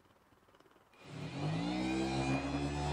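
An orbital sander whirs up to speed and sands steadily.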